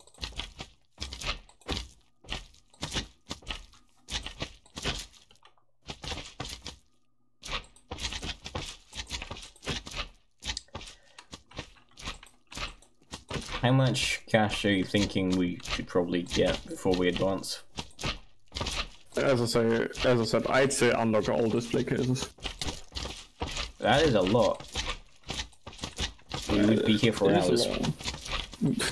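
Quick squelchy hits and splats sound again and again in a video game.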